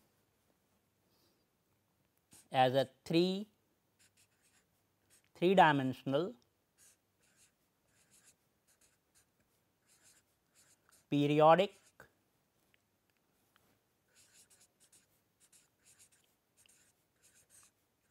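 A marker squeaks and scratches softly across paper.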